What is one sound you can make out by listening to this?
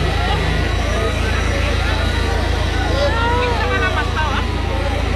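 A crowd of men and women talk and call out close by.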